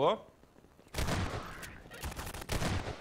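A shotgun fires several loud blasts in quick succession.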